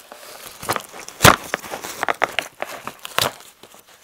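Paper and cardboard tear open.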